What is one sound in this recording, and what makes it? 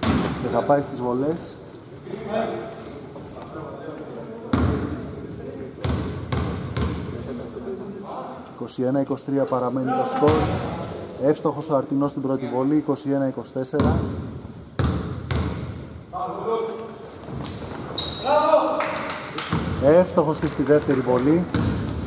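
Men talk and call out across a large echoing gym.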